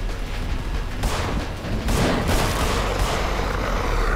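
Pistol shots bang in quick succession.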